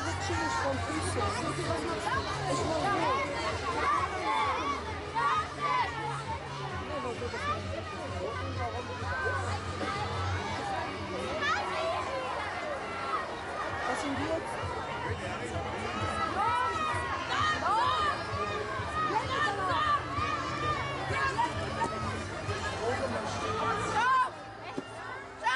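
A large crowd of men, women and children chatters and calls out all around outdoors.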